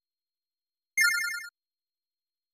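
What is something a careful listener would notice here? A short bright chime rings out once.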